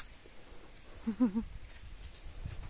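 A duck gives a short, low call close by.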